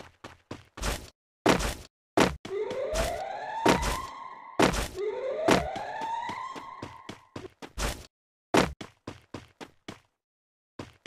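Footsteps thud quickly across grass.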